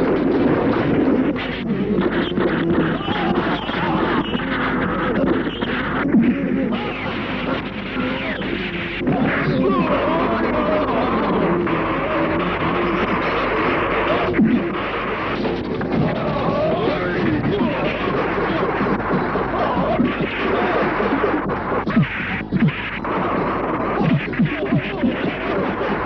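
Punches land with sharp, heavy thuds.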